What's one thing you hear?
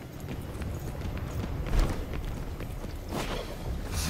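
Quick footsteps run over a hard floor.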